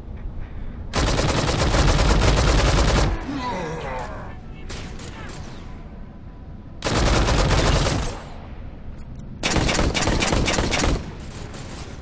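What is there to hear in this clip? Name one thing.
An automatic rifle fires rapid bursts of gunfire.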